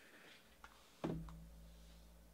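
A hard plastic card case knocks against a metal case.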